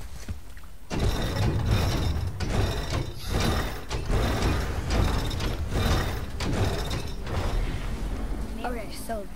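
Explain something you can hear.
A heavy wooden crank ratchets and clunks as it turns.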